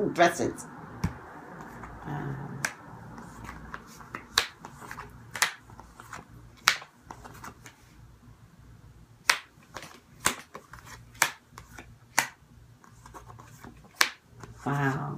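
Cards tap and shuffle in a woman's hands.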